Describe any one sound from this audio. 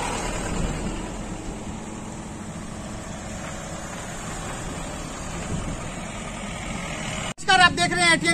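A car engine runs as a vehicle drives slowly past.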